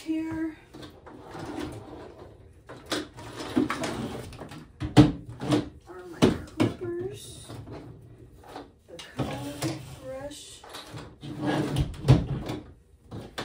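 Plastic bottles clack as they are set down on a table.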